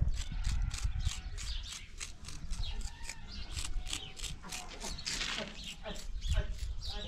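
Fingers scrape and scratch across wet cement.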